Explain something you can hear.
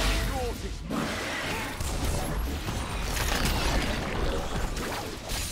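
Game spell effects crackle and whoosh during a fast fight.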